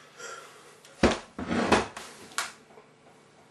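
A young man laughs loudly nearby.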